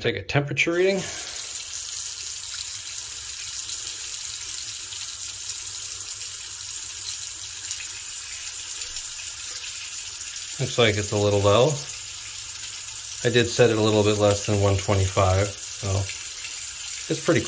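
Water runs steadily from a tap into a sink.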